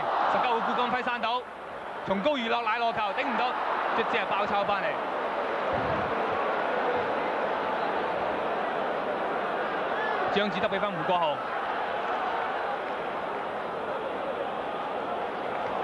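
A large crowd roars and murmurs steadily in an open stadium.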